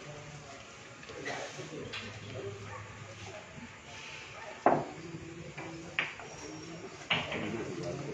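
Pool balls clack together as they are racked.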